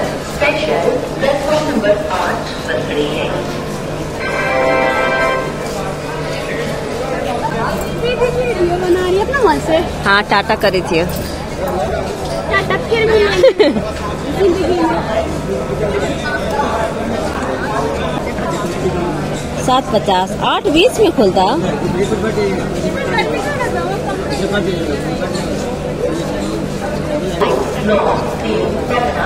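Several people chatter nearby.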